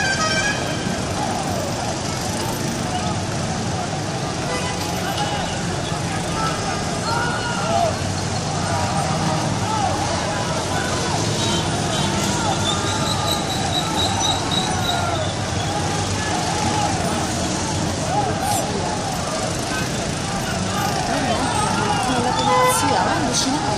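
A large crowd shouts and cheers in the distance outdoors.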